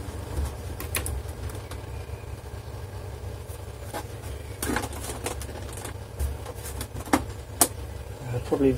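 Hands knock and click against the plastic casing of a computer.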